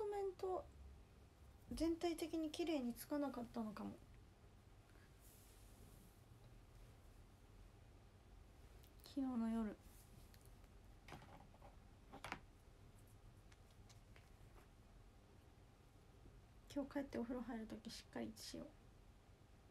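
A young woman speaks softly and close by, in short bursts.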